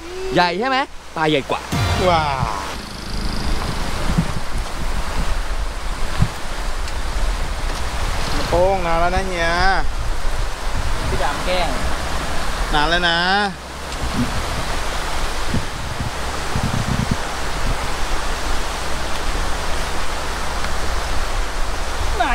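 Wind rumbles against a microphone outdoors.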